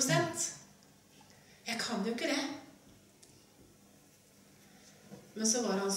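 A woman speaks calmly into a microphone, with pauses between phrases.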